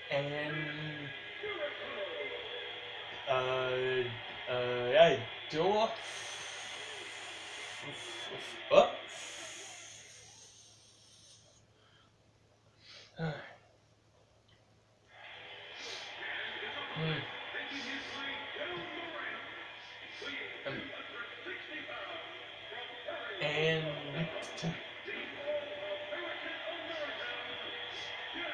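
Wrestling video game sounds play through a television speaker.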